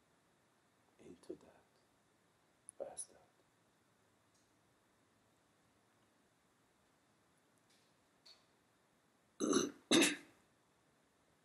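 A middle-aged man speaks briefly and calmly nearby, with long pauses.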